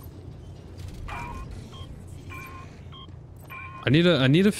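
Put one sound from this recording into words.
An electronic console beeps in short repeated tones.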